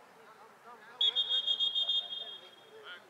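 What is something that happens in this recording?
A referee's whistle blows in several short, shrill blasts.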